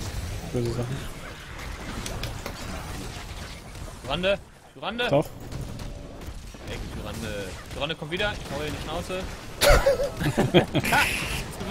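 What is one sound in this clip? Magic blasts and clashing weapons ring out in a fantasy battle.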